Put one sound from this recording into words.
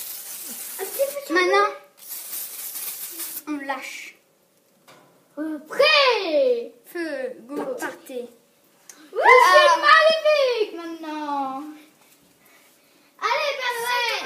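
A boy talks nearby.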